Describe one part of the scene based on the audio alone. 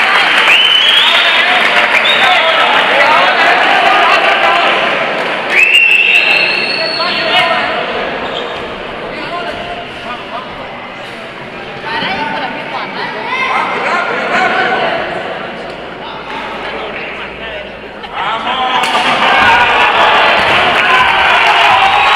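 A crowd in a large echoing hall cheers and shouts loudly.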